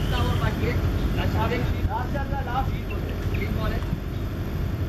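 Distant young men shout to each other across an open field.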